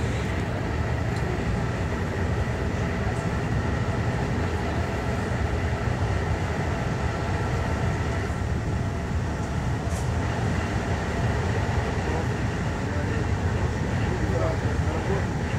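A passenger train carriage rumbles.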